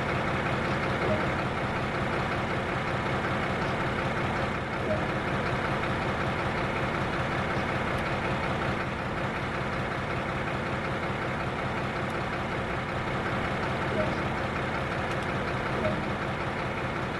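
A locomotive engine hums steadily at idle.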